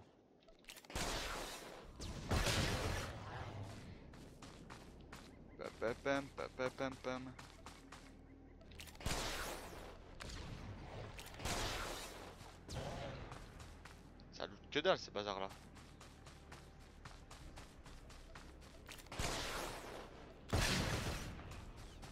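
Blaster shots fire in loud bursts.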